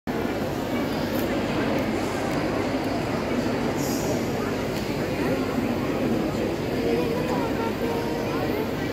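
A young girl speaks through a loudspeaker in a large echoing courtyard.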